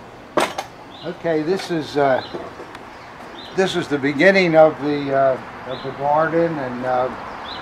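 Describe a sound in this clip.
An elderly man talks calmly and close by, outdoors.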